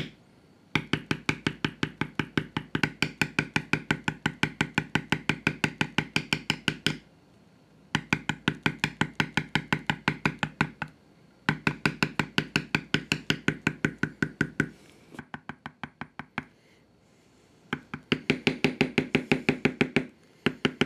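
A mallet taps a metal leather stamp into veg-tan leather in quick bursts.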